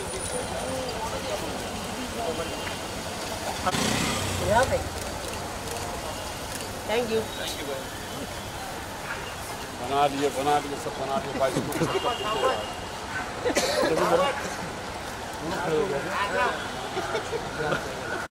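Street traffic hums steadily in the background.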